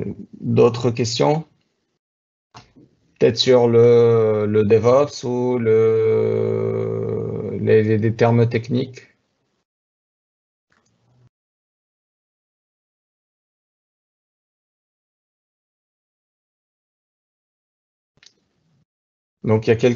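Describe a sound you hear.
A man speaks calmly through an online call microphone, with long pauses.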